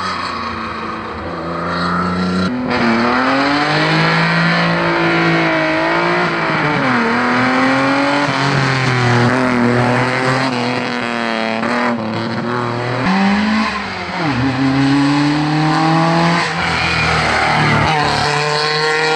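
A rally car engine roars and revs hard as it speeds past close by.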